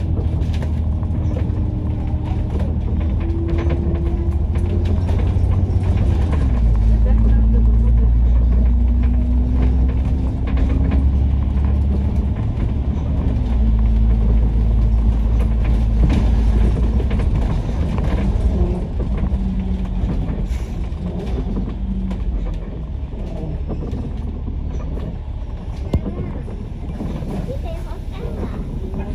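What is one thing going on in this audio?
A bus engine hums and drones steadily while driving, with its pitch shifting as it changes gear.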